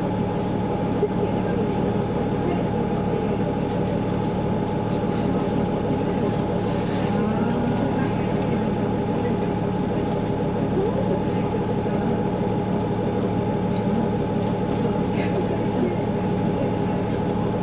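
A train's diesel engine idles with a steady, low hum.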